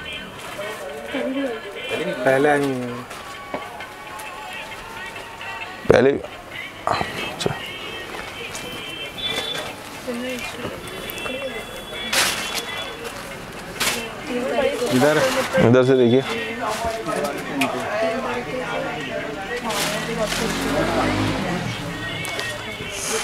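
Heavy fabric rustles as it is handled.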